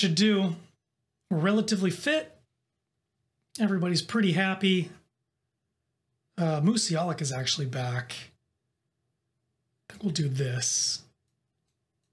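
A young man talks calmly and closely into a microphone, in short bursts.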